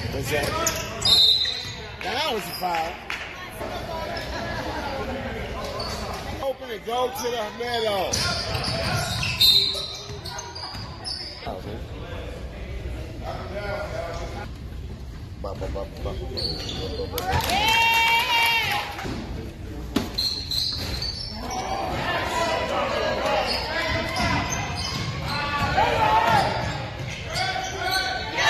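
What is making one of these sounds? Spectators murmur and call out in an echoing gym.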